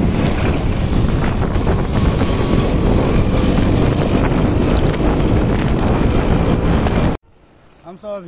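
Wind rumbles loudly over a moving motorcycle.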